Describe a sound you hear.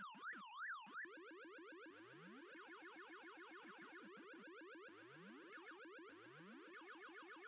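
A rapid electronic warble plays with short falling bloops.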